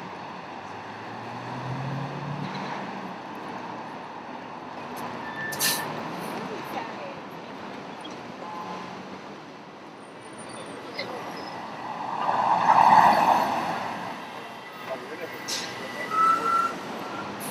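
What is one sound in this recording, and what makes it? City traffic hums steadily along a busy street.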